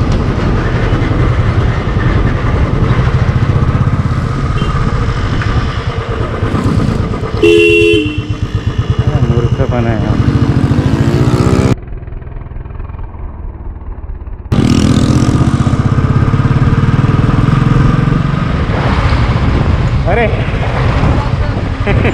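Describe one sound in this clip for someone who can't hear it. A motorcycle engine thumps steadily up close.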